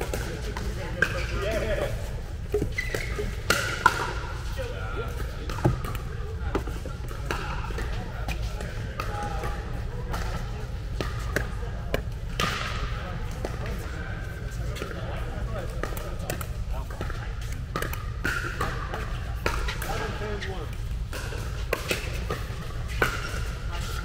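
Paddles hit a plastic ball with sharp hollow pops.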